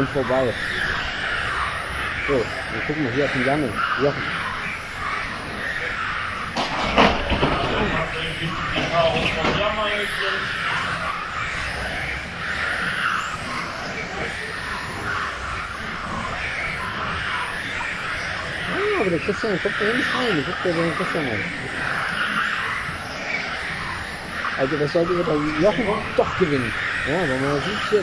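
Small electric model cars whine and buzz as they race around a track.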